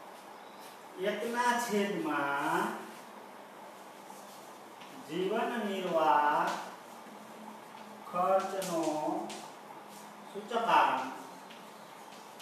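A middle-aged man speaks calmly in short phrases.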